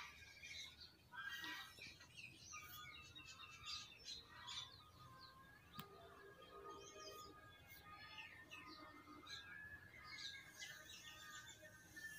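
A cloth rubs softly across a wooden surface.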